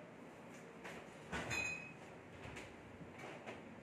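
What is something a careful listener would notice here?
A fridge door opens with a soft thud.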